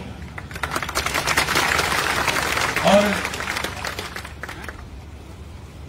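A crowd applauds and cheers outdoors.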